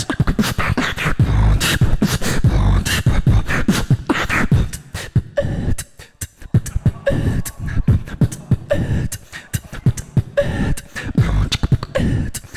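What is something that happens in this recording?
A young man raps loudly into a microphone through loudspeakers, in a large echoing hall.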